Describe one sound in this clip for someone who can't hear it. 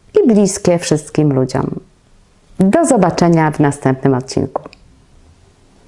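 A young woman speaks clearly and with animation, close to a microphone.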